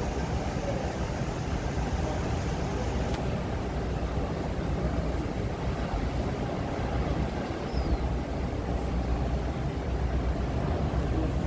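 Water churns and rushes in a ship's wake.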